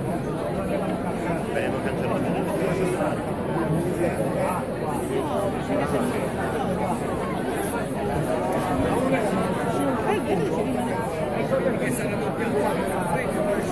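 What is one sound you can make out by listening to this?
A large crowd of men and women chatters and calls out all around, outdoors.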